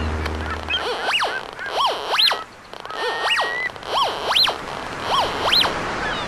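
A metal detector beeps with rising and falling tones.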